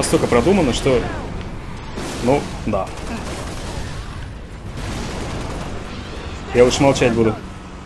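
Energy weapons zap and crackle.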